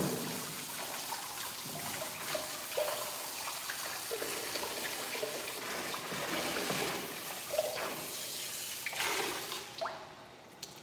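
Water sprays steadily from a shower head onto a dog.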